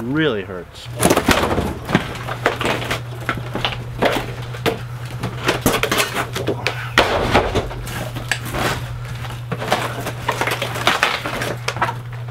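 Wood and debris crack and clatter as a man tears out paneling.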